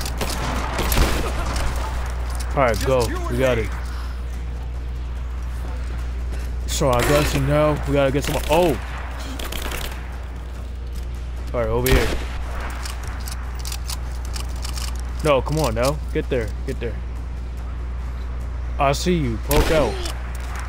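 Gunshots crack in a game.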